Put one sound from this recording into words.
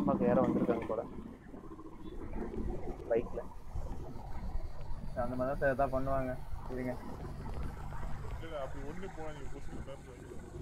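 A man talks calmly over a voice chat.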